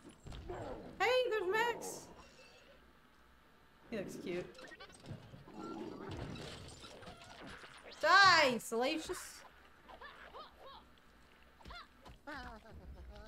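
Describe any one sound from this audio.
A young woman exclaims excitedly into a headset microphone.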